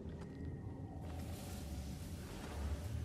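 Thick hanging vines rustle as they are pushed apart.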